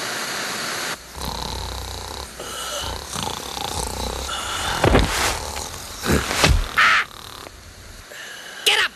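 A teenage boy groans and moans.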